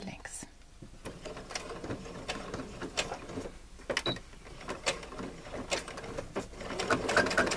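A sewing machine stitches with quick mechanical clicks.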